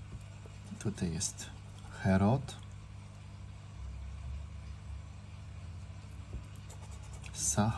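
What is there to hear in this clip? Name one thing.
A plastic scraper scratches across a card.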